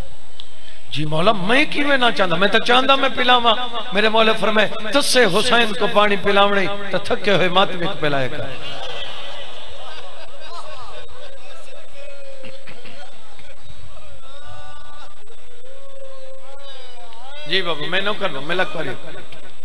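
A man chants loudly and with passion into a microphone, in a reverberant space.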